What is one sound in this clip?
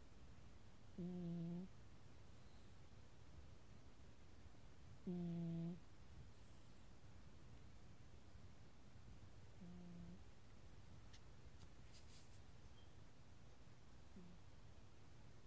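A cat gives a few short, soft mews.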